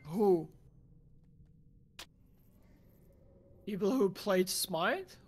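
A young man speaks with animation into a microphone, close by.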